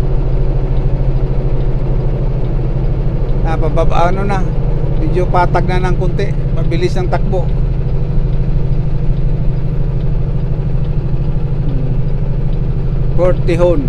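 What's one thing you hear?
An engine hums low and steady inside a moving car.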